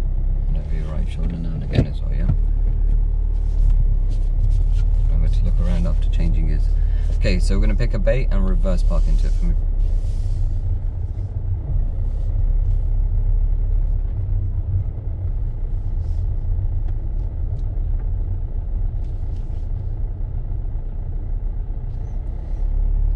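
A car engine hums low and steady as the car rolls slowly.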